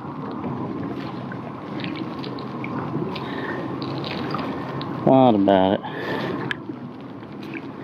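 Water laps against a small boat.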